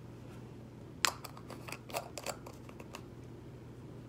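A plastic jar lid clicks and rattles as a man twists it.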